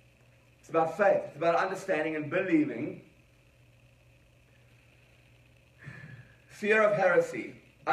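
A man speaks calmly into a microphone, heard through loudspeakers in an echoing room.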